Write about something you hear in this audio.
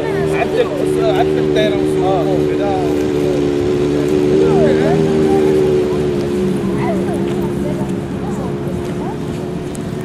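Children chatter and call out outdoors.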